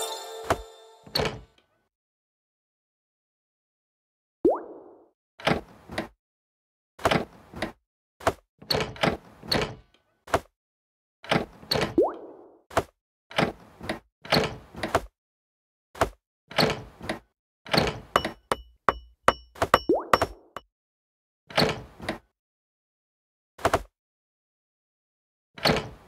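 Short cartoonish pops and chimes sound again and again as game pieces are placed.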